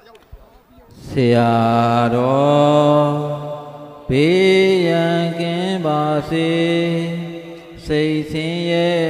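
An elderly man chants loudly in a drawn-out, singing voice.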